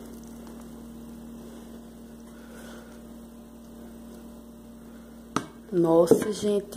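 Thick batter pours softly into a bowl.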